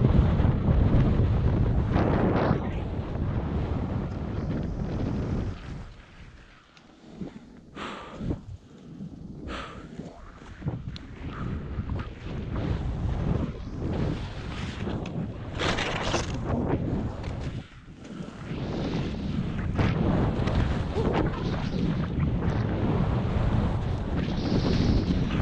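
Wind rushes loudly past, outdoors.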